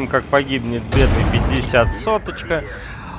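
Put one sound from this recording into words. A shell bursts with a loud bang.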